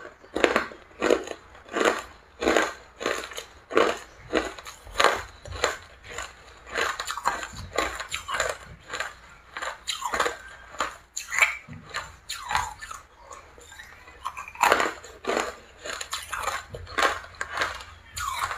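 A young woman crunches hard ice close to the microphone.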